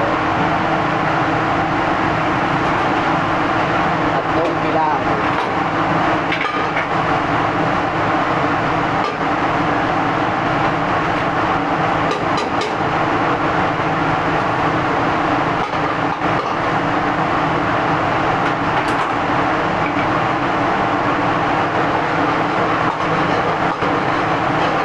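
A gas burner roars steadily.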